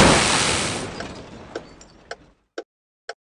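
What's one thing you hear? Water sprays and hisses in a car wash.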